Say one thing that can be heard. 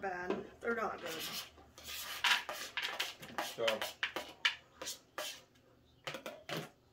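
A plate scrapes and clatters on a table.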